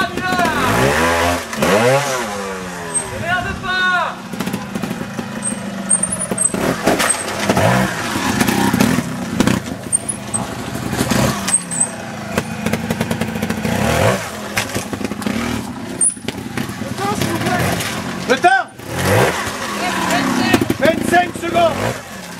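A motorcycle engine revs sharply up and down.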